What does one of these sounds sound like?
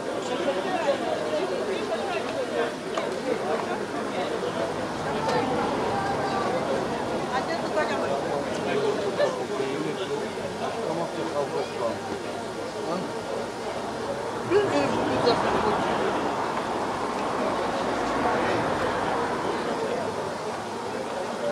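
A crowd of people chatter and talk nearby.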